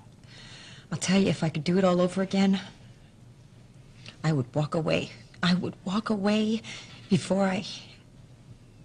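A woman speaks quietly and tensely close by.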